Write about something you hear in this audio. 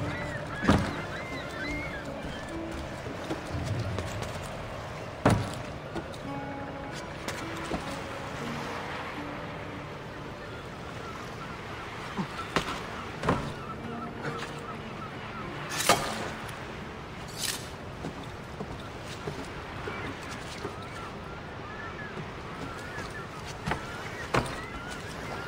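Hands and feet knock and thump against a wooden mast during a climb.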